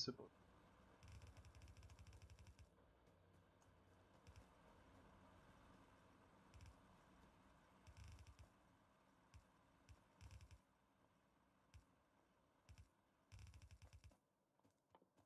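Footsteps patter quickly in short bursts.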